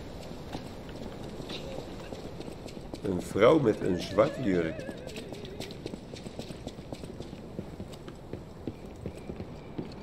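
Footsteps tap on stone as a figure runs.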